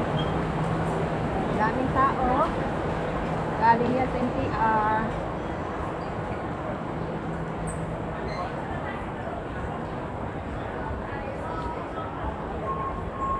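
A crowd murmurs and footsteps echo in a large hall.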